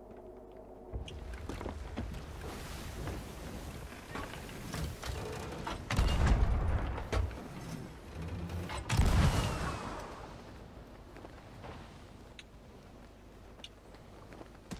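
Waves churn and roll on a stormy sea.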